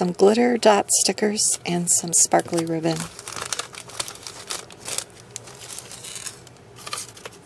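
Plastic sleeves crinkle and rustle under fingers.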